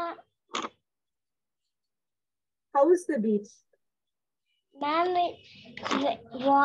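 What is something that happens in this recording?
A young girl speaks in short bursts over an online call.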